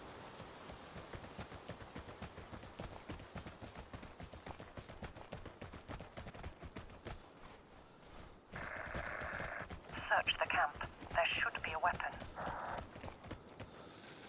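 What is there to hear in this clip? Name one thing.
Footsteps tread quickly over wood and rocky ground.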